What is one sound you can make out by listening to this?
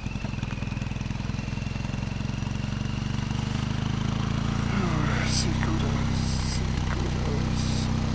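A motorcycle engine throbs steadily close by as it rides along.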